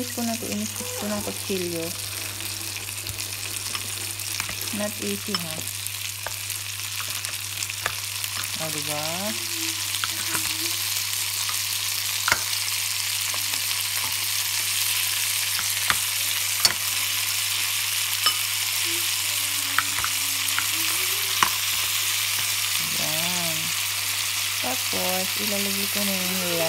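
Food sizzles steadily in a hot pan.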